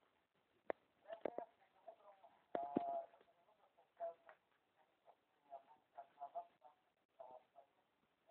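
A young person speaks close to a phone microphone.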